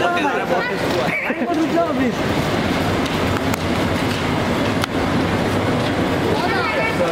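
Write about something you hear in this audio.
Young men talk and call out excitedly close by.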